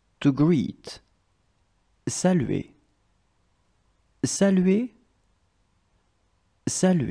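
A woman speaks clearly into a microphone, pronouncing single words with pauses between them.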